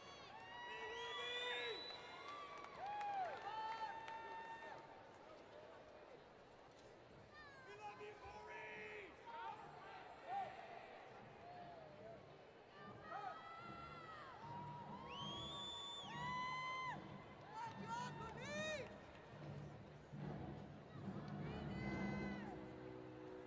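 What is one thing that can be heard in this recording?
A marching band plays brass music in a large echoing stadium.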